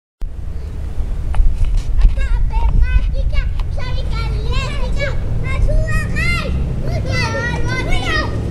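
Plastic wheels rumble loudly on asphalt.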